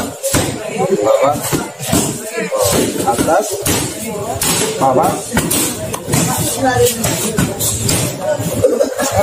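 Uniforms snap with each punch.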